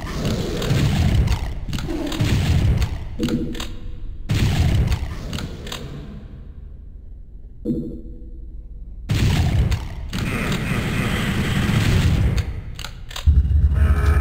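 Game gunfire booms repeatedly.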